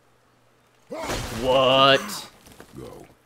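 An axe is thrown and whooshes through the air.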